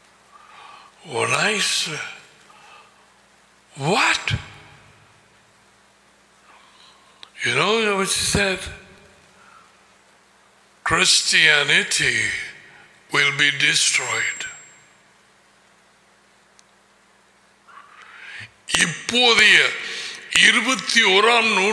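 An elderly man speaks with emphasis into a close microphone, in short bursts with pauses.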